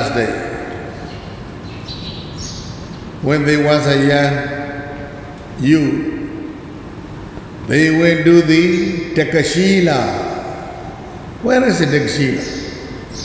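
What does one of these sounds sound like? An elderly man speaks slowly and calmly into a microphone, with long pauses.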